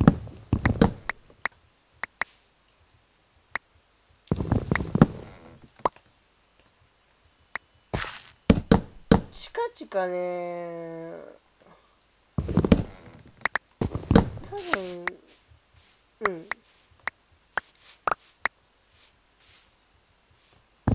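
An axe chops at wood with quick, dry knocks.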